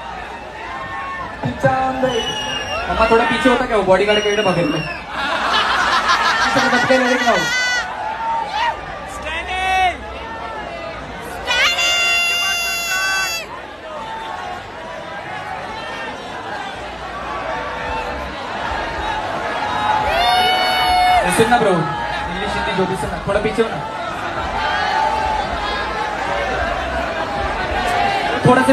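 A large crowd cheers and sings along in a loud hall.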